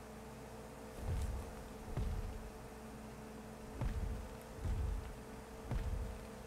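Heavy wings beat with deep, regular whooshing thumps.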